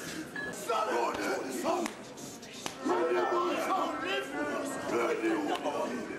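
A church congregation sings together.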